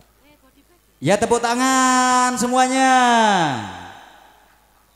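A man calls out loudly through a microphone in a long drawn-out voice.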